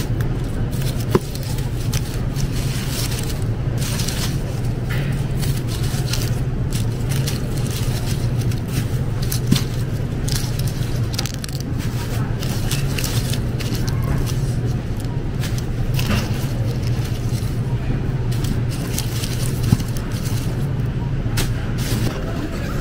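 Dry onion skins rustle and crackle under a hand.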